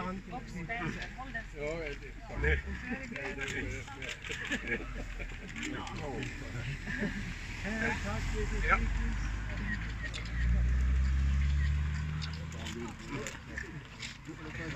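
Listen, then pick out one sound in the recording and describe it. Several adults talk and chatter close by outdoors.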